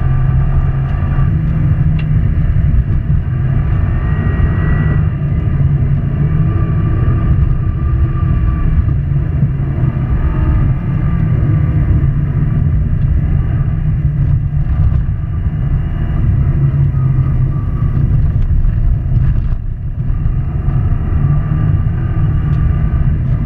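A turbocharged flat-four Subaru WRX engine races at full throttle, heard from inside the car.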